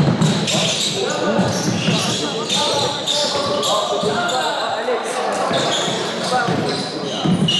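A basketball thumps as it is dribbled on the floor.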